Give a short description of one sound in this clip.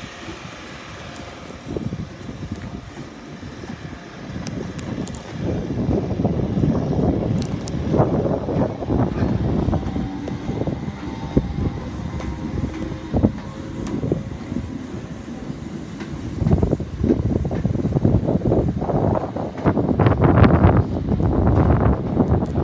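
An electric multiple-unit train pulls away, its wheels rumbling on the rails.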